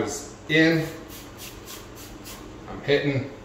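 A spray bottle squirts several quick bursts.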